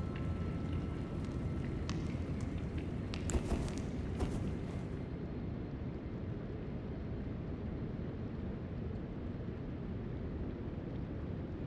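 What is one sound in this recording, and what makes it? A low, rumbling drone echoes through a large hall.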